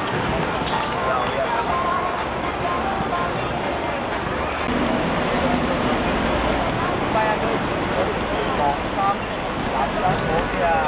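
Shoes squeak sharply on a hard court.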